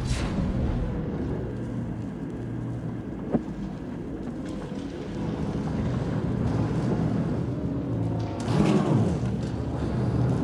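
A spacecraft engine hums steadily.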